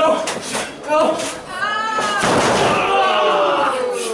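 A wrestler slams down onto a wrestling ring mat with a thud.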